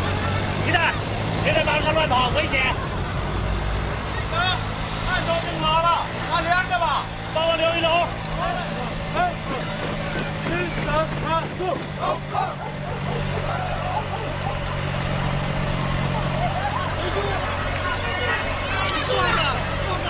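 A motorcycle engine putters steadily nearby.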